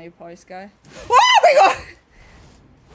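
A young woman cries out loudly in surprise.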